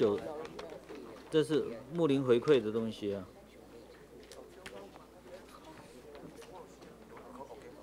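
Several people murmur in the background.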